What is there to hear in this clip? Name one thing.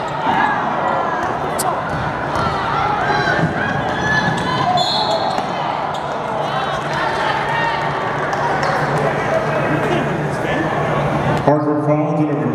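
A crowd cheers and roars in a large echoing arena.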